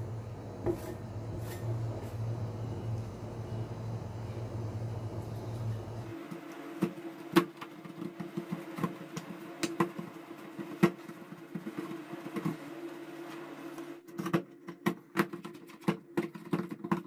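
A metal spatula scrapes and taps on a metal tray.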